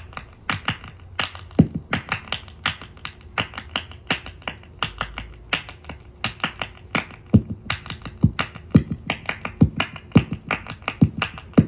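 A young man beatboxes into a microphone, making quick clicks and deep thumps.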